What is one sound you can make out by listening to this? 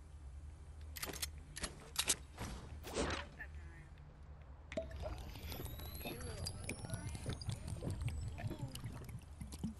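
Items clink softly as they are picked up.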